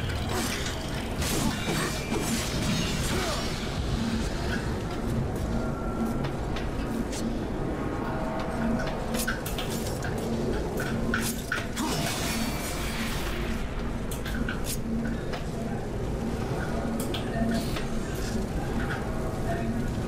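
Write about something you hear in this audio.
Metal blades clash and strike in quick bursts.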